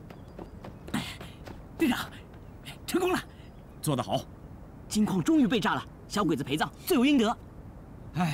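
A young man speaks with excitement.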